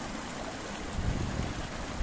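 Water pours from a spout into the stream.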